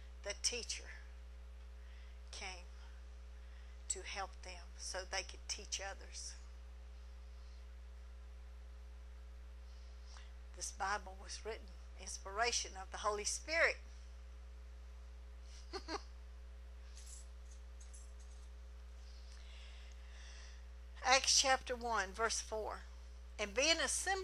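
A middle-aged woman speaks calmly into a microphone, with pauses.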